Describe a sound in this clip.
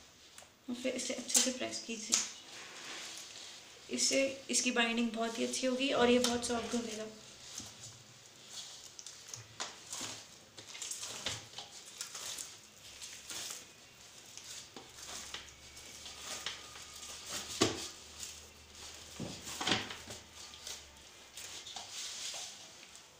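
Hands knead soft dough in a steel bowl.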